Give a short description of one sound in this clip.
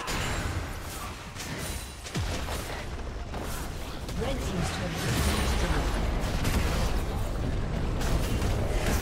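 Game spells and attacks crash and whoosh in quick bursts.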